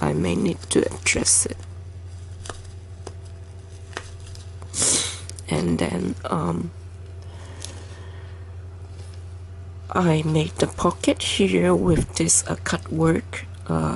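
Lace fabric rustles softly as hands handle it.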